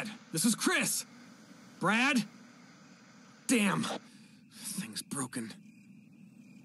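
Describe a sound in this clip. A young man calls out urgently into a radio, close by.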